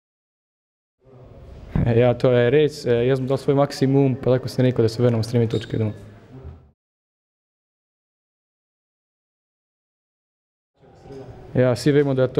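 A young man speaks calmly and close to microphones.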